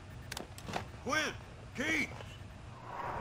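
A man shouts urgently into a microphone.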